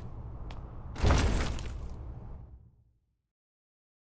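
A heavy stone door rumbles open.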